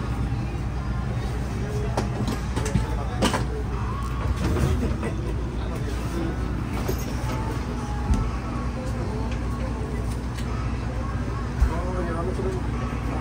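A vehicle engine idles with a steady low hum.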